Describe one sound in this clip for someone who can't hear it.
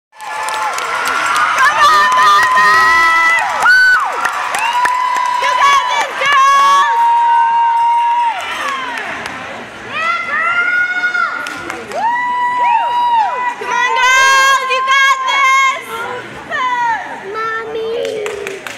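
A group of young girls chant and shout together in a large echoing hall.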